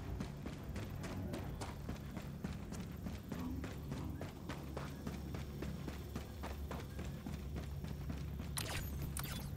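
Heavy armoured footsteps thud steadily on rocky ground.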